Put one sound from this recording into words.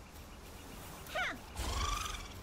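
A bright magical whoosh rings out.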